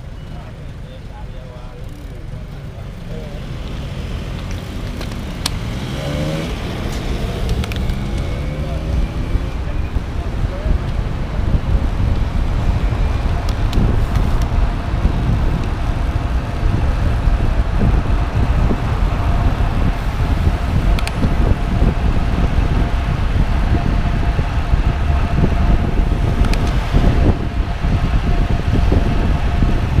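Cars drive past on the road nearby.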